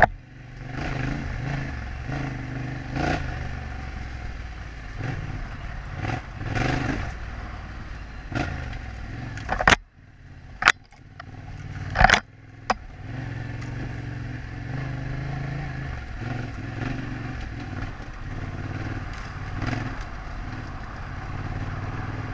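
Knobby tyres rumble and crunch over a rough dirt track.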